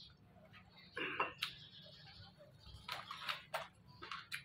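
A spoon clinks and scrapes against a plate.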